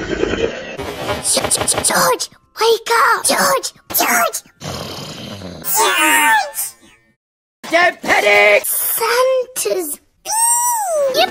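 A young girl speaks with excitement.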